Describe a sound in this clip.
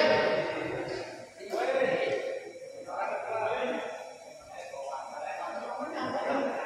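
Spectators nearby talk and call out in an echoing hall.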